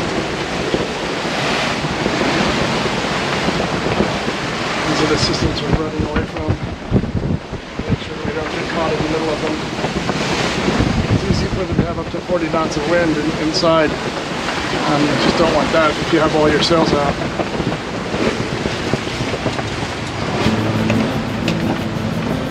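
Wind blows hard across the open sea.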